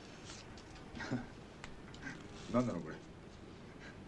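Several men laugh together.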